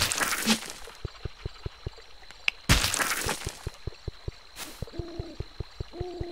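Soft footsteps thud at a quick, steady pace.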